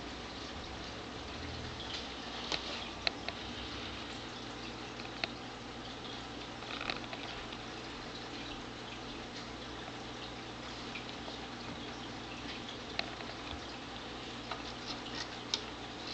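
A cat's paws bump and scrape against a glass tank.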